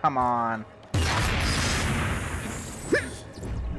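A loud burst of energy whooshes and crackles.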